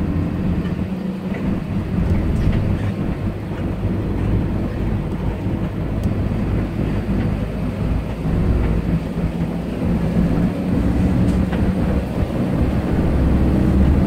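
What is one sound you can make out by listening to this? Tyres hum on the road.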